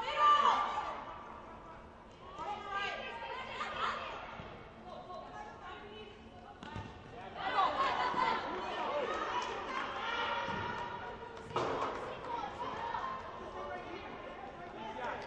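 Young women shout to each other across an echoing indoor hall.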